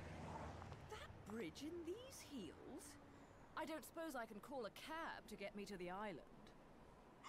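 A woman speaks calmly and wryly, close by.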